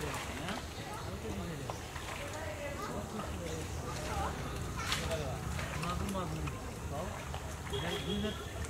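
Women talk casually to each other nearby, outdoors.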